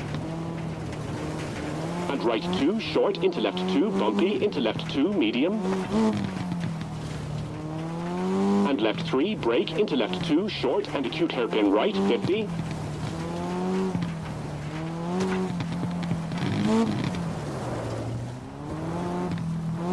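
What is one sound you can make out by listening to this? A rally car engine revs up and down.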